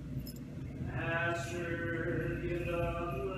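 A man chants in a slow, steady voice in a large echoing room.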